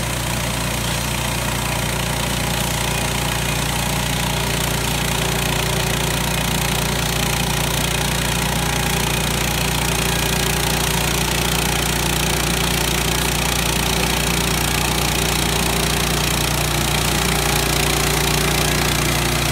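An engine drones steadily close by.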